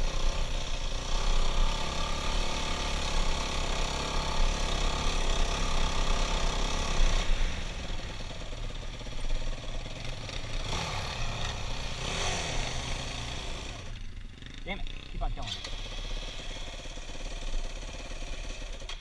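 A dirt bike engine revs and roars close by.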